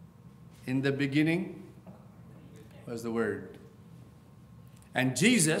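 A middle-aged man speaks steadily into a microphone in a softly echoing room, with pauses between phrases.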